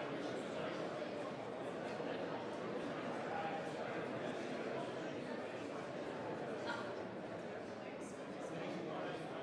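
A crowd of men and women murmur quietly in a large echoing hall.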